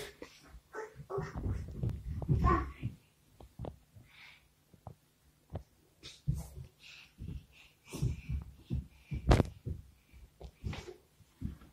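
Small feet thump on a soft mattress.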